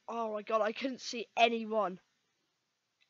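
A boy speaks excitedly into a close microphone.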